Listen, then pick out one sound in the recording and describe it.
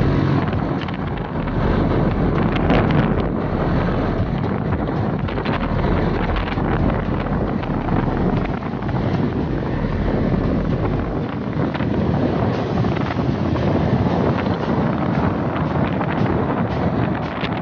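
Wind rushes past the rider outdoors.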